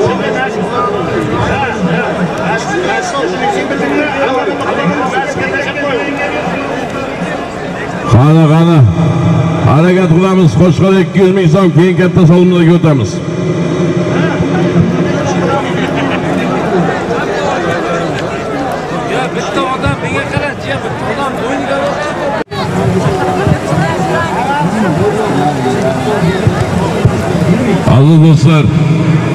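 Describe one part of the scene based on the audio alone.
A large outdoor crowd of men shouts and cheers.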